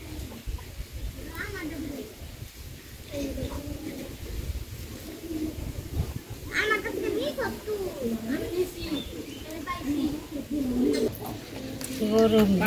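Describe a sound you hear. Feathers rustle as they are plucked by hand.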